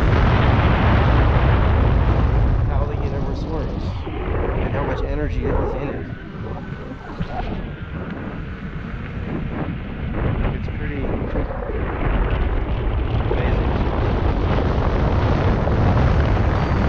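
Wind buffets a microphone on an electric unicycle riding at speed.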